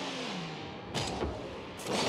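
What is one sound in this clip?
A ball is struck with a loud thud.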